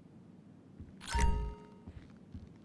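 A heavy metal safe door unlatches and swings open with a thud.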